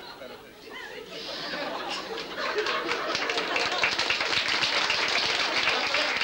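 An audience laughs and claps.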